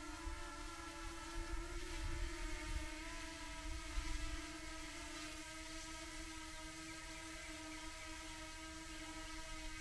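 Wind gusts and buffets outdoors.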